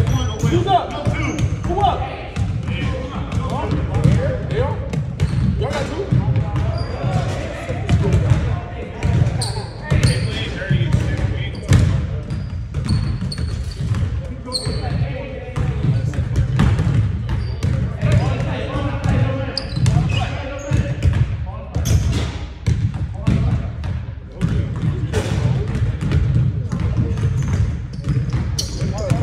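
Basketballs bounce on a wooden court in a large echoing gym.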